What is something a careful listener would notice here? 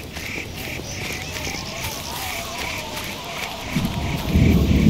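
A dog pants rapidly nearby.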